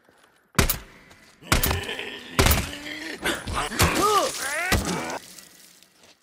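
Rifle shots ring out loudly with echoing tails.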